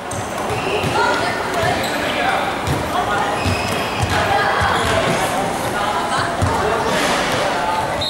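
Basketballs bounce on a hard floor in a large echoing hall.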